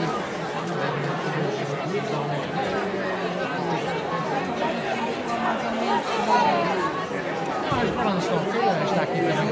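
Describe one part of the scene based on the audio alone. A crowd of men and women chatter loudly all around, outdoors.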